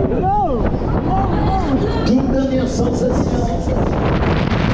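Riders scream and shriek with excitement.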